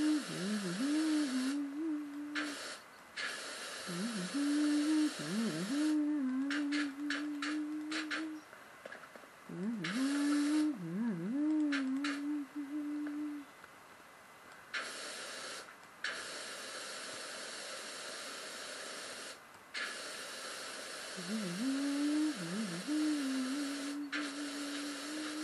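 A pressure washer sprays water with a loud hiss through speakers, stopping and starting in bursts.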